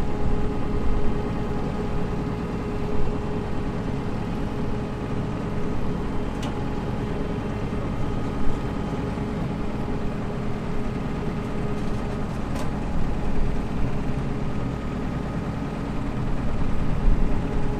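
Wind blusters across an outdoor microphone.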